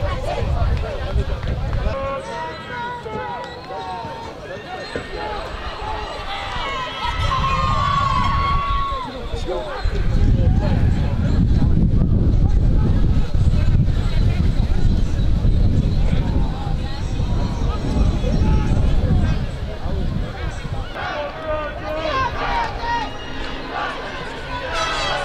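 A crowd of young people chatters and calls out nearby outdoors.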